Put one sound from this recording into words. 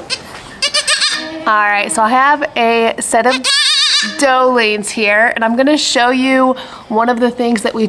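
Young goats bleat loudly up close.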